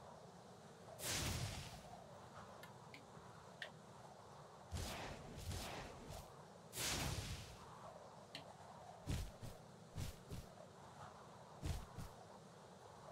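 A video game plays soft whooshing sound effects.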